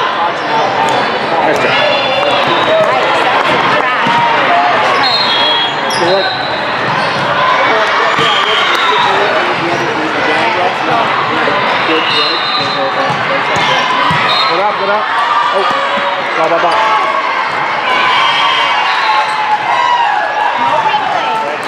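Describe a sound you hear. A crowd of voices chatters and calls out throughout a large echoing hall.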